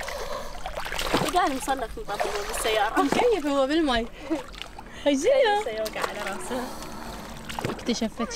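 Water splashes around a small child's feet.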